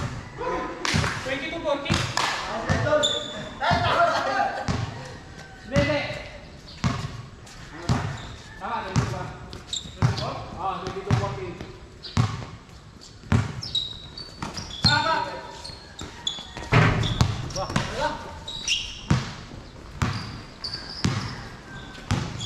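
A basketball bounces repeatedly on a hard court.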